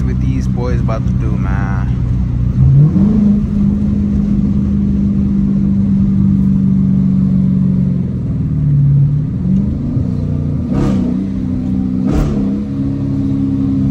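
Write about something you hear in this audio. A V8 muscle car engine roars from inside the cabin, accelerating hard through the gears.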